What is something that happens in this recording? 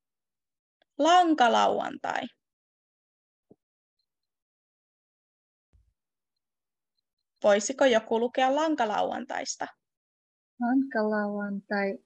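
A woman speaks calmly into a microphone over an online call, pausing between phrases.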